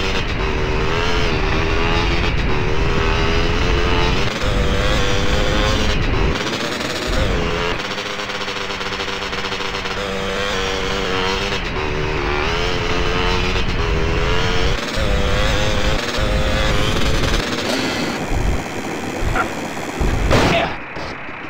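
A dirt bike engine revs and whines steadily, rising and falling in pitch.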